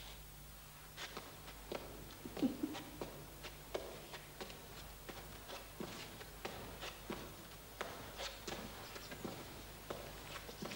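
Footsteps tap slowly on a stone floor in an echoing hall.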